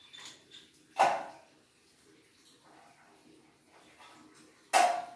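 A wooden board knocks as it is pushed into place.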